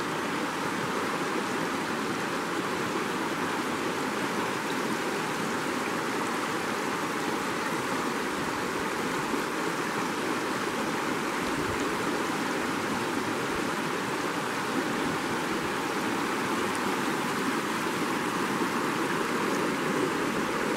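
A shallow river rushes and splashes steadily over rocks, close by.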